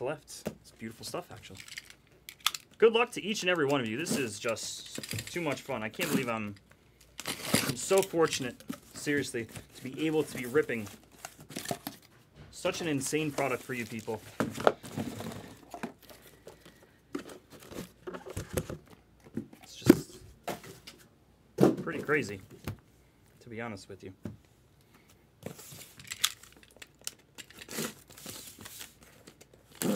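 Cardboard boxes scrape and knock as they are handled.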